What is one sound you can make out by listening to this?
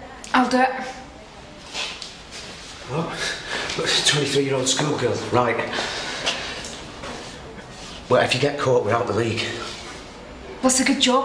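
A man talks quietly and tensely nearby.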